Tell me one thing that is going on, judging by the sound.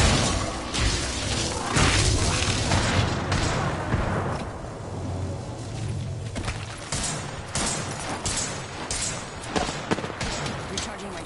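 Footsteps run quickly over ground.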